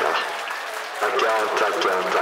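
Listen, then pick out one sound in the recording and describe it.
A young man speaks animatedly into a close microphone.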